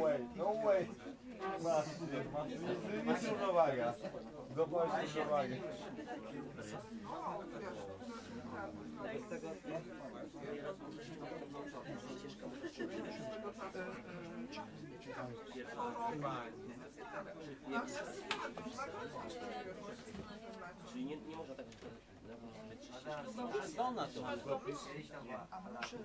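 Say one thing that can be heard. A young man talks.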